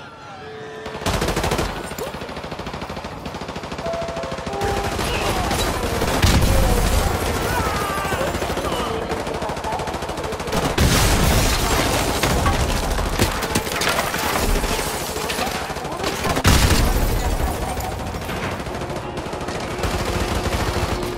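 Rapid gunfire rattles and bangs, loud and close.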